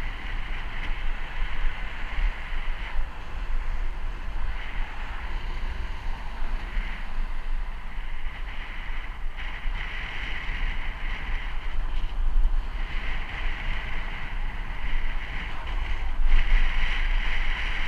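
Bicycle tyres whir on smooth asphalt.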